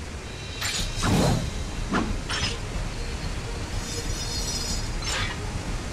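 A blade rings out sharply as a sword is drawn and sheathed.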